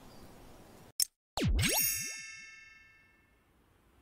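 A short electronic chime rings out and fades.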